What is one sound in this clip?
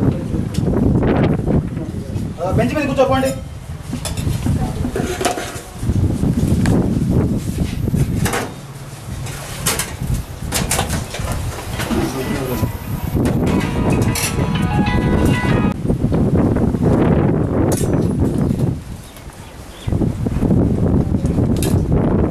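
Metal serving spoons clink against steel pots.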